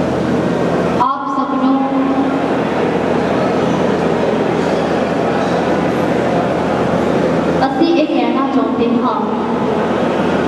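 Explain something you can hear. A young woman speaks calmly into a microphone, heard through a loudspeaker.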